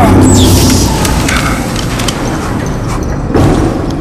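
Heavy metal footsteps clank on a hard floor.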